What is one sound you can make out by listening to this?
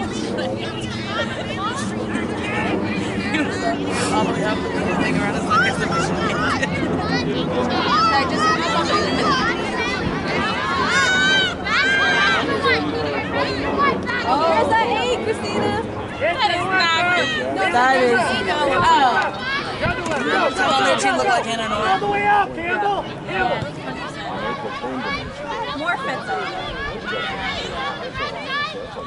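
Young women shout and call out to one another across an open field.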